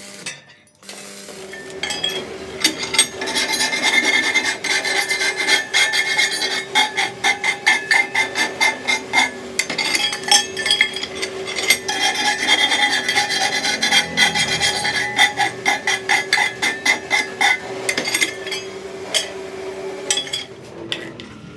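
A power press thumps rapidly and repeatedly.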